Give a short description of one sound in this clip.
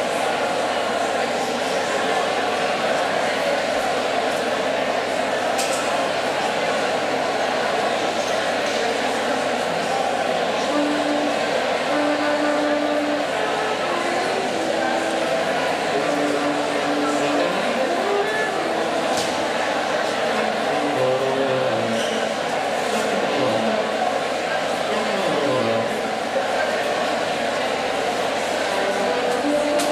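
A large crowd chatters and murmurs in an echoing hall.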